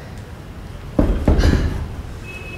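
Heavy dumbbells thud down onto the floor.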